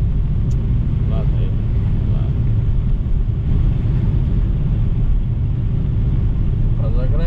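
A young man speaks briefly near the microphone.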